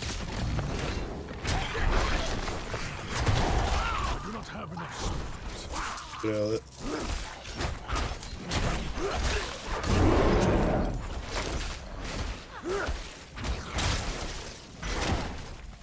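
Weapons clash and strike in a fast, noisy fight.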